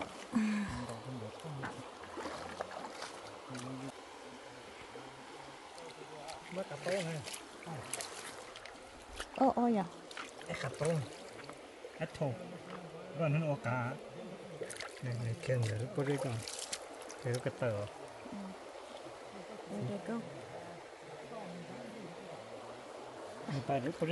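Shallow water trickles gently over stones.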